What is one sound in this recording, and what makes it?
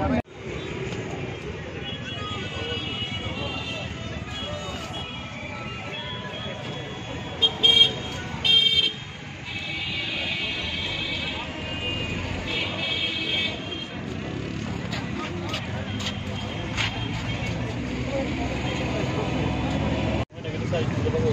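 A crowd of people murmurs outdoors in a busy street.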